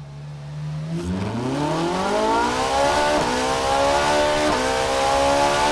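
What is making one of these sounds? A sports car engine revs up, its roar rising steadily in pitch and loudness.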